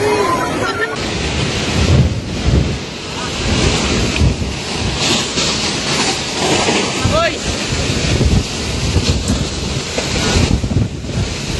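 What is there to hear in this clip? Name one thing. Gusty wind and rain buffet outdoors.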